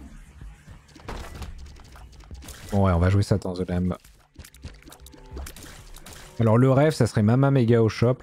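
Video game sound effects pop and splatter in quick bursts.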